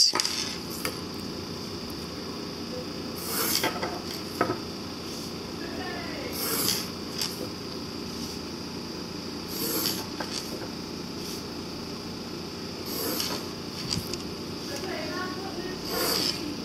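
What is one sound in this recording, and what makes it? A pencil scratches across paper in short strokes.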